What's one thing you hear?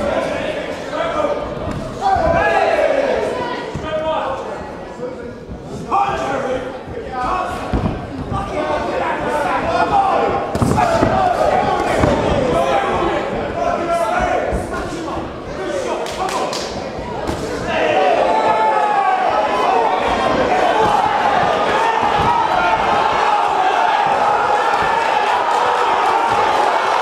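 A large crowd shouts and cheers in an echoing hall.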